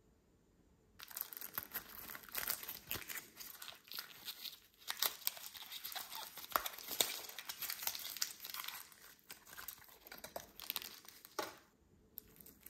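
Paper wrapping crinkles and tears.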